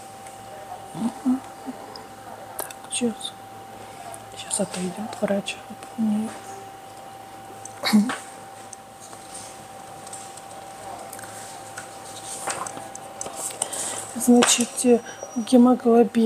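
A middle-aged woman speaks calmly and close by, in short bursts with pauses.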